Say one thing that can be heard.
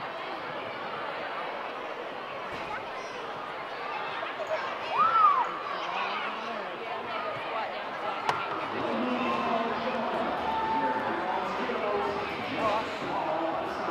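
Young children call out and chatter.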